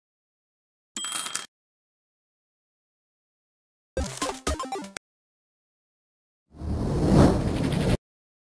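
Sparkly magical effects crackle.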